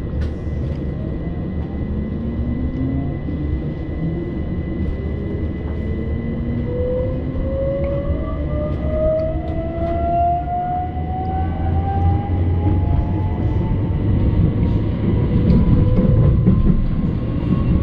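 A train's electric motor whines, rising steadily in pitch as it speeds up.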